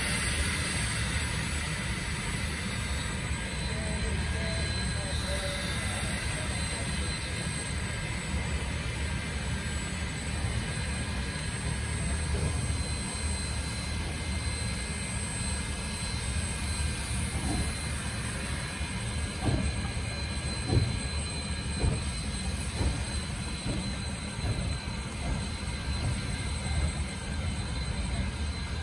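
A steam locomotive hisses steam steadily.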